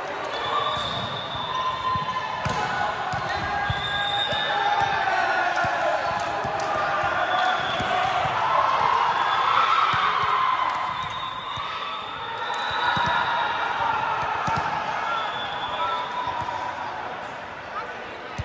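Many girls and young women chatter and call out in a large echoing hall.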